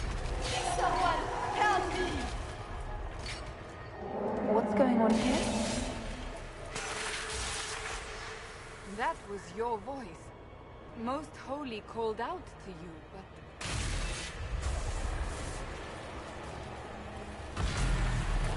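A magical rift roars and crackles loudly.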